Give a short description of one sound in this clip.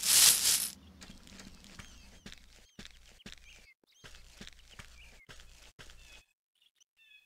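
Footsteps thud softly on a dirt path.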